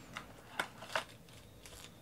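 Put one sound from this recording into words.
A knife slits through plastic wrap.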